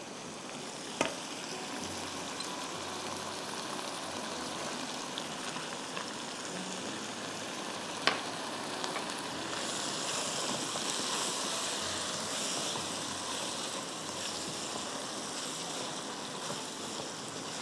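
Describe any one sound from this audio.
A spatula scrapes and knocks against a pan.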